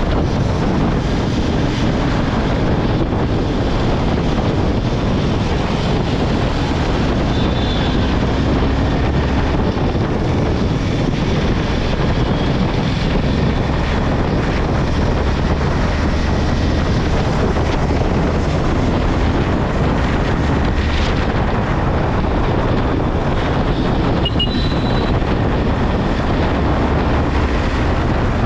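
Wind rushes loudly past a motorcycle rider riding at speed.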